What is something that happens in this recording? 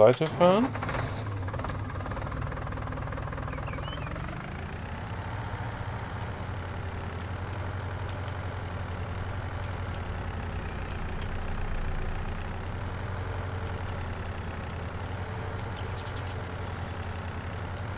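A tractor engine rumbles steadily as it drives along.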